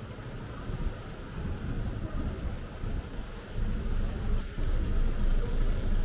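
A car engine runs nearby as the car rolls slowly forward.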